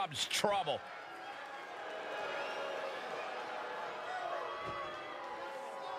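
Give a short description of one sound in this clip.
A large crowd cheers in a big echoing arena.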